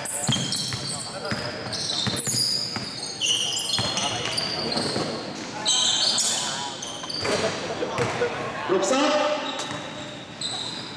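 A basketball bounces on the floor, echoing in a large hall.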